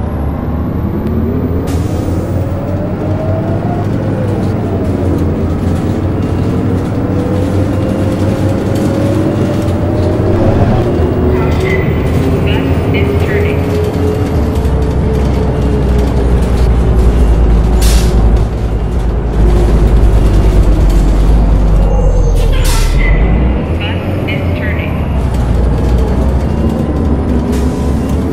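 A bus engine hums and revs steadily as the bus drives along.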